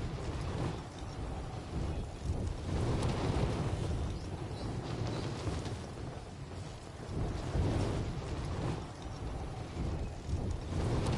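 Wind rushes and roars steadily during a fast fall through the air.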